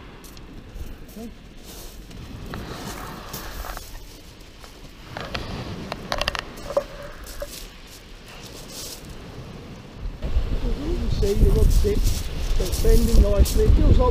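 Waves wash gently onto a pebble shore.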